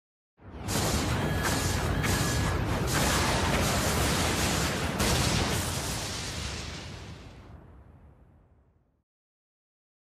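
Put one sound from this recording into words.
A loud roaring blast bursts out and slowly fades away.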